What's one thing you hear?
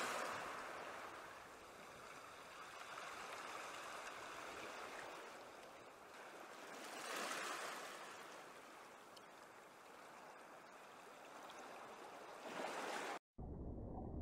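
Small waves lap gently against wooden boats.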